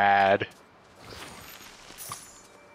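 A magical sparkle shimmers and fades.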